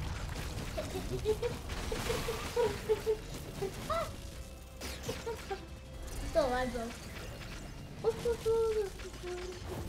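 A young boy talks excitedly close to a microphone.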